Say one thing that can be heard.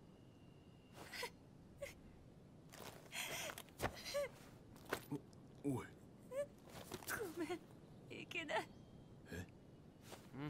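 A young woman sobs and cries quietly.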